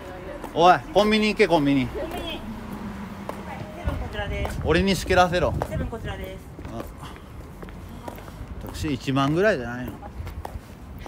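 A young man talks close by with animation, in short bursts.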